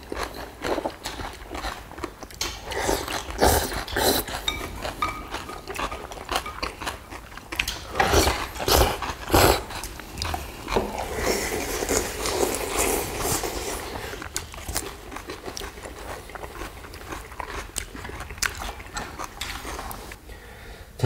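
Chopsticks clink against bowls.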